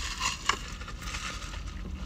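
A man sips a drink through a straw.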